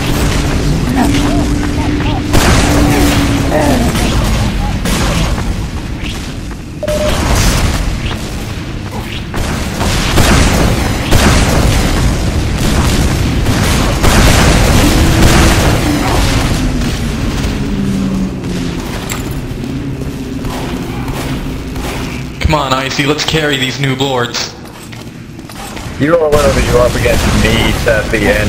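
Explosions boom nearby.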